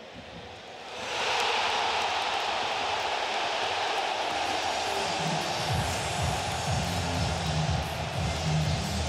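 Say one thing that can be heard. A stadium crowd roars loudly after a goal.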